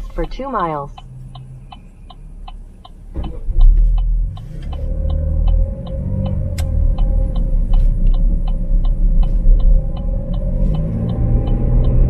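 A turn signal ticks steadily inside the car.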